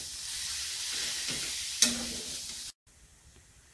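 A spoon scrapes against a metal pan.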